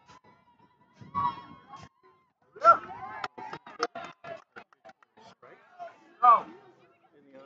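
Young women shout and cheer outdoors at a distance.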